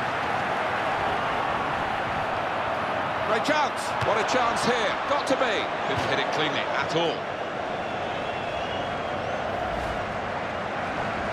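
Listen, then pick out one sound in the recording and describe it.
A large stadium crowd roars steadily.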